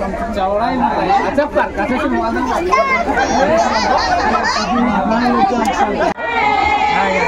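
A crowd of women chatters and talks all at once nearby.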